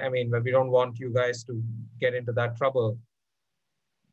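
A man talks with animation through an online call.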